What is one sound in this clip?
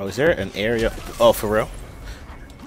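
A car crashes with a metallic smash.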